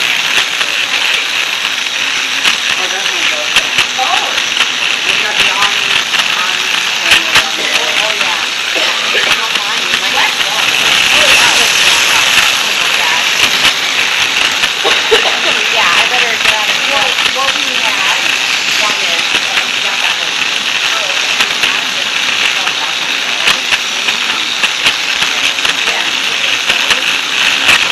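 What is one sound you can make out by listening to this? Toy train wheels click and rattle on plastic track.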